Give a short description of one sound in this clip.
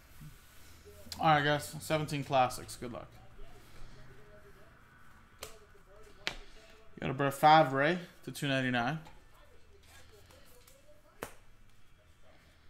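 Trading cards click and rustle as they are flipped through by hand.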